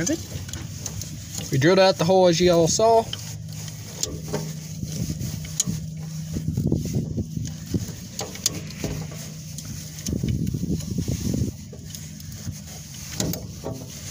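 A hand rivet tool squeezes and clicks against metal.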